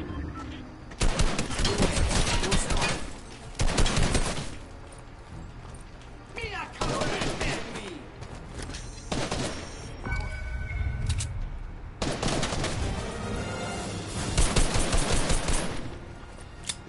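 Rapid gunshots fire in bursts.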